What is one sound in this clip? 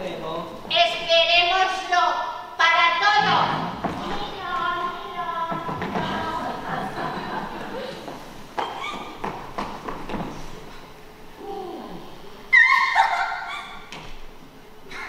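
A man speaks on a stage in a large hall.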